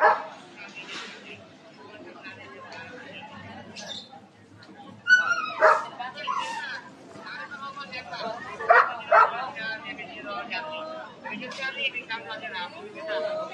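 Several men talk nearby outdoors in a busy crowd.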